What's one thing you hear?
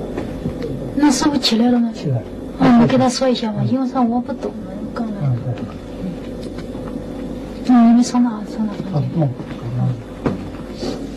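A woman speaks calmly nearby.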